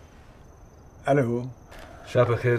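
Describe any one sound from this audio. An elderly man speaks into a phone.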